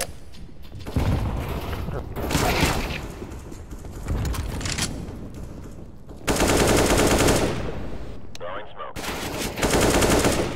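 Gunshots crack loudly in rapid bursts.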